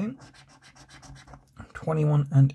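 A coin scrapes across a scratch card.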